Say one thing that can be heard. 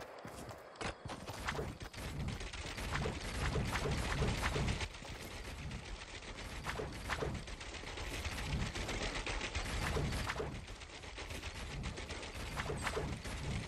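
Building pieces snap into place with quick clicks.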